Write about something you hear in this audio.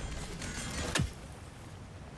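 An axe strikes with a sharp thud.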